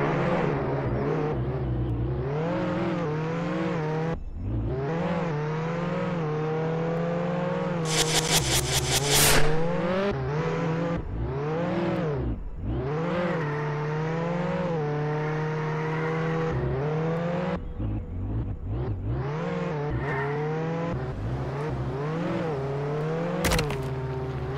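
A car engine revs and whines, rising and falling with speed.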